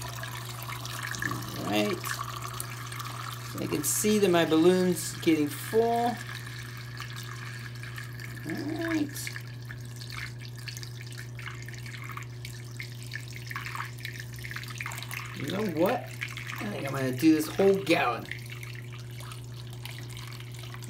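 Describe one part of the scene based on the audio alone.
Water pours through a funnel into a balloon.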